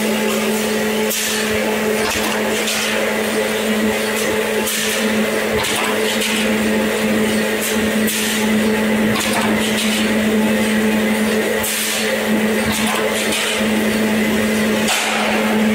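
Metal strips clatter and clank.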